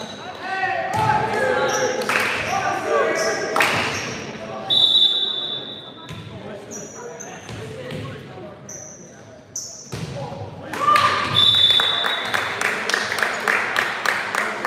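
A volleyball thumps off players' hands.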